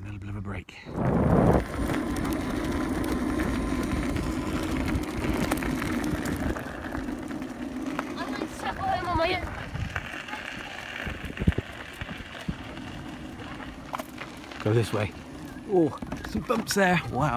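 Wheels roll and crunch over a gravel path.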